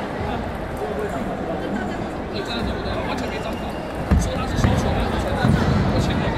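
A table tennis ball clicks back and forth on paddles and a table.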